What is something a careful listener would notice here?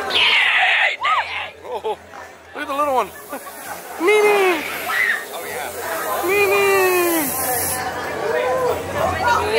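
Young women scream loudly nearby, again and again.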